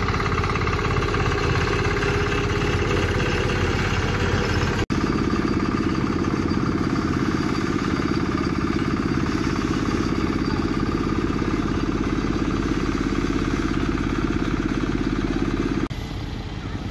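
A compactor engine rumbles and thumps loudly nearby.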